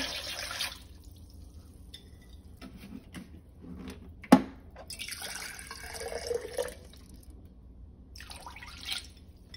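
Liquid pours from a jar and splashes into a pot.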